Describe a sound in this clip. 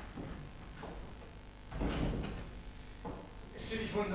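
A door shuts with a thud.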